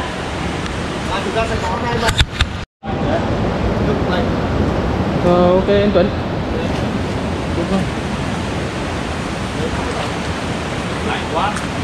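Water splashes as people wade through a pool.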